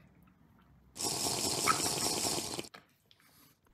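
A man slurps loudly.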